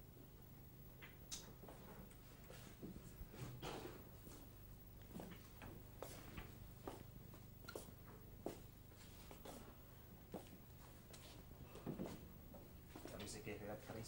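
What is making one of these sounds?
Footsteps walk on cobblestones, coming closer.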